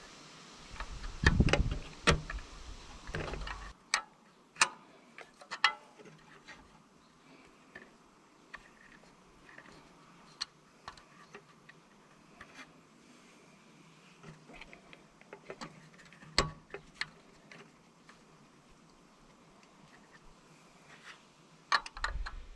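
A metal wrench clinks against metal.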